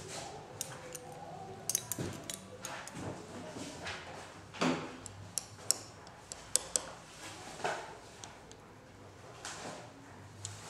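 Small glass clicks as a dropper taps against a bottle.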